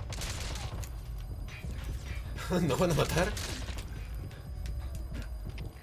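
Gunfire rings out in short bursts.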